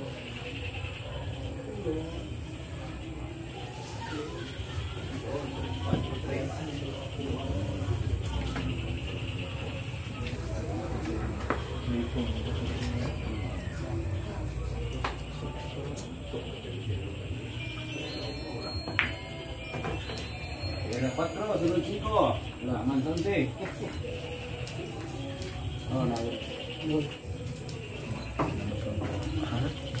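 Several men talk and murmur nearby.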